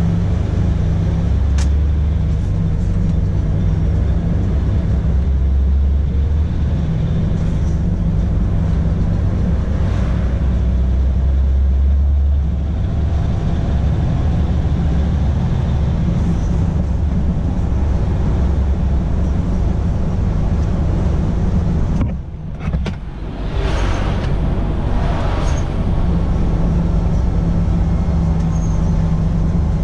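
A truck engine hums low and steady from inside the cab.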